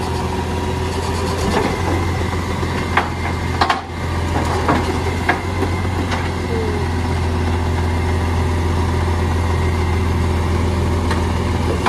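A mechanical arm whirs and clanks as it lifts a wheelie bin.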